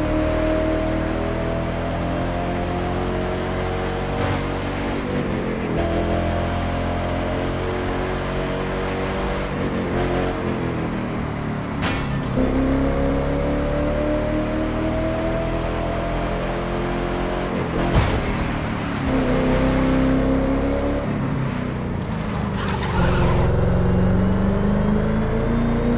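A sports car engine roars at high speed, its pitch rising through each gear and dropping at every shift.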